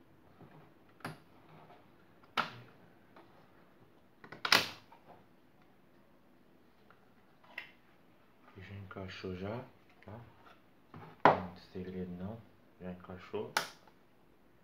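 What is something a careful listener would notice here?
A circuit board clicks and knocks as hands handle it.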